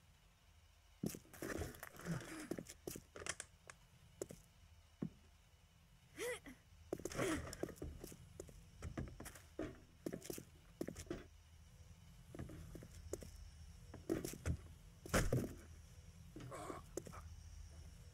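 Footsteps tap softly across a hard floor.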